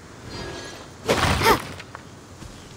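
Wooden crates smash apart with a loud crash.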